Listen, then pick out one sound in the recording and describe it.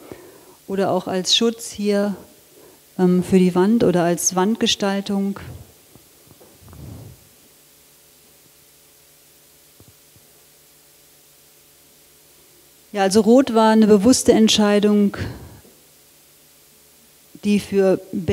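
A woman speaks calmly through a microphone.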